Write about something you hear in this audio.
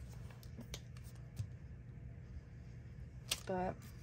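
A glue stick rubs across paper.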